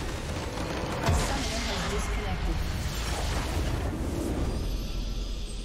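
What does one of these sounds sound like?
A large magical explosion booms in a video game.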